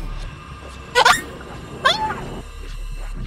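A young woman screams into a microphone.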